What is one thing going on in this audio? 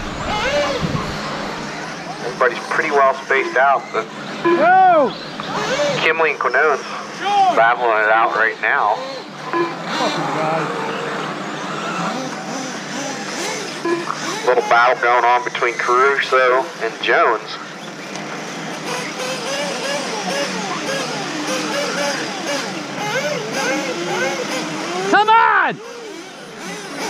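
Small electric race cars whine and rev, their pitch rising and falling as they speed around a track.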